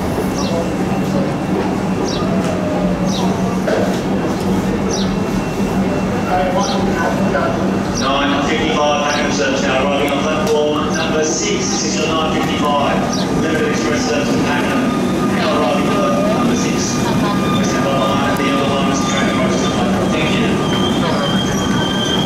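A train rumbles slowly closer.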